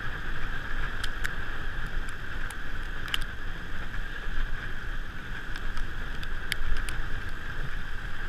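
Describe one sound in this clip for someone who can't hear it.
Wind rumbles steadily across a moving microphone.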